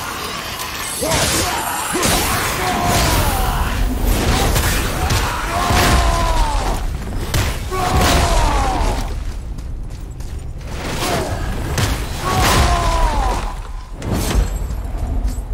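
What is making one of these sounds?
Heavy blows and explosions crash during a fight.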